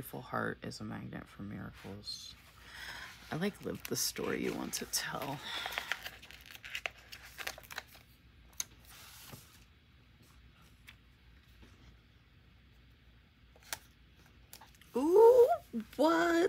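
Paper rustles and crinkles as sheets are handled.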